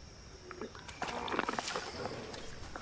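A fishing reel whirs as a line is reeled in.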